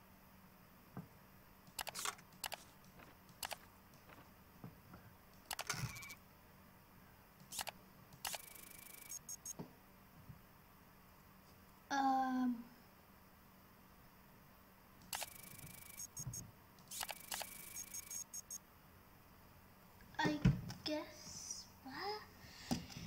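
Short clicks and beeps from a computer game sound now and then.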